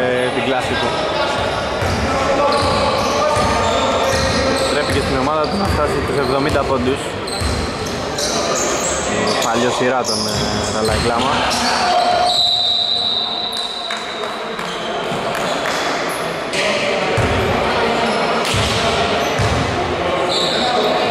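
A basketball bounces on a wooden floor in an echoing hall.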